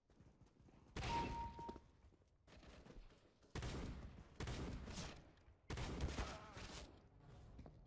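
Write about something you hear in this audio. Shotgun blasts boom loudly, several times.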